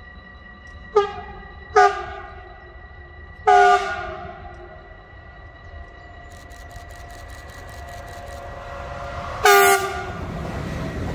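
A train horn sounds several short blasts, approaching.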